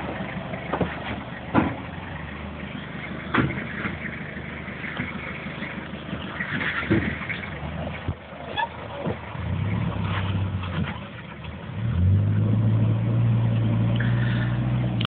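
A pickup truck engine rumbles low and revs up as it climbs over rocks.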